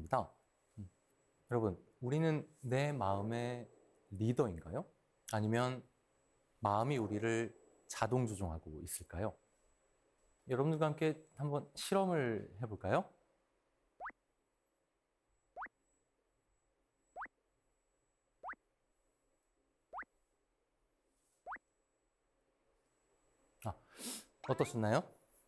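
A man speaks expressively through a microphone.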